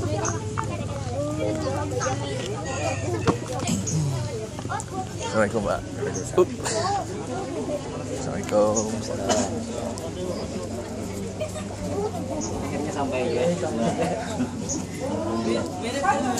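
Several men talk at once close by, in a lively crowd.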